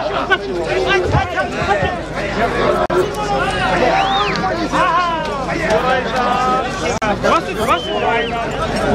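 A crowd of men shouts and calls out loudly outdoors.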